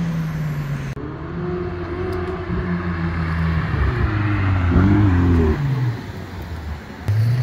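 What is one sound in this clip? A second sports car engine revs and roars as it drives by.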